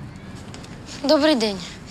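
A young girl speaks with rising, expressive tone nearby.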